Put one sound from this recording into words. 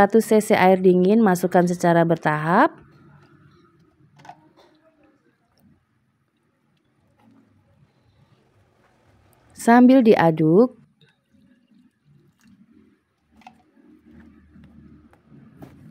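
A whisk stirs and clinks in a bowl of batter.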